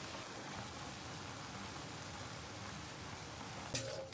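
Chopsticks stir noodles in boiling water.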